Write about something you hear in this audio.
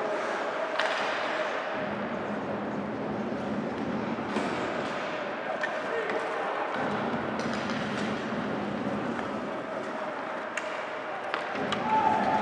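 A hockey stick clacks against a puck.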